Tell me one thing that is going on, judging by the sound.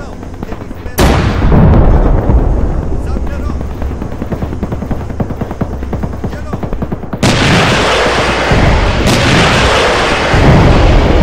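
A heavy explosion booms and rumbles away.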